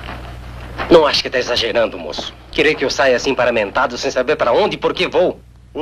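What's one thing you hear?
An older man speaks in a questioning tone, close by.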